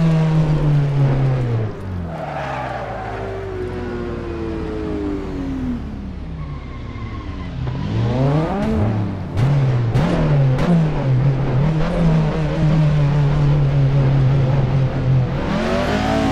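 A car engine roars loudly, dropping in pitch and then revving up and down repeatedly.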